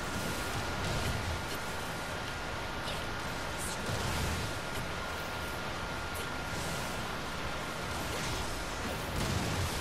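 Blades slash into flesh.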